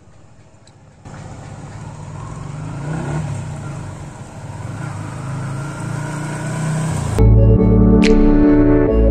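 A motorcycle engine approaches from a distance and grows louder.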